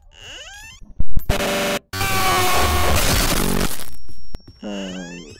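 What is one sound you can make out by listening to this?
A loud, harsh screech suddenly blares and then cuts off.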